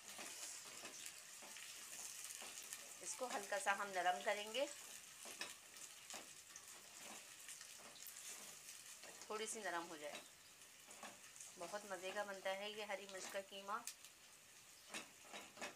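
A spatula scrapes and stirs onions in a metal pot.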